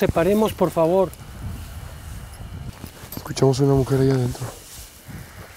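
A man calls out loudly in a long, drawn-out voice.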